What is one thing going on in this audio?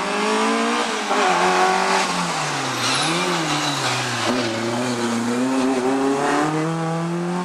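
A car engine revs hard and whines as the car speeds past close by.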